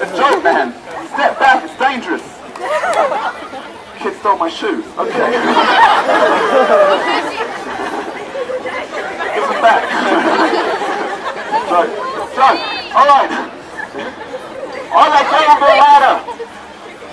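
A crowd of men and women chatters and calls out nearby.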